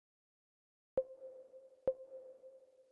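Short game menu blips sound twice.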